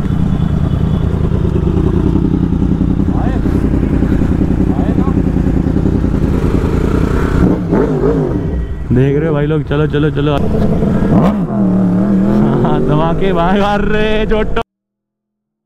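A motorcycle engine drones steadily.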